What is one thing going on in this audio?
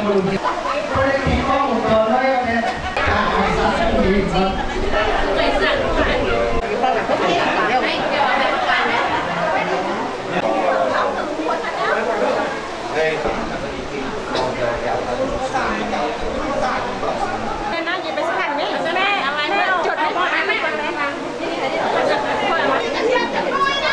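Many women and men chatter and talk nearby.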